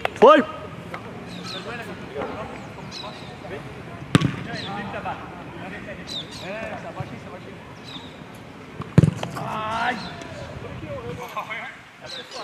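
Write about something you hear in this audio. Men talk and call out nearby outdoors.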